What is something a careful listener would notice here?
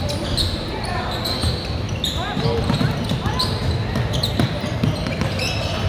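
A basketball bounces on a hardwood floor.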